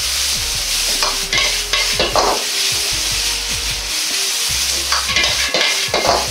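A metal ladle scrapes and clanks against a wok.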